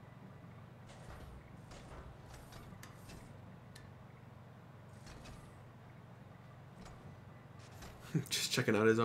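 Mechanical armor whirs and clicks as an arm moves.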